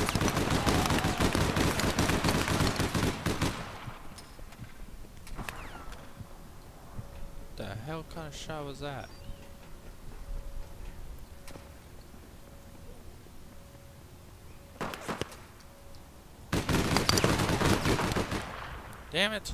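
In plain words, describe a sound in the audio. A rapid burst of automatic gunfire rattles loudly.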